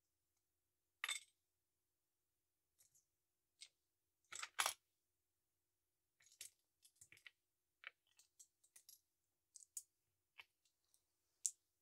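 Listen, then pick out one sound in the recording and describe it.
Small plastic bricks click and clatter as they are sorted.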